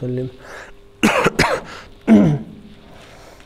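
A man coughs and clears his throat.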